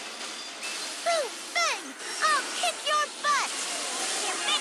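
Game chimes ring brightly in quick succession.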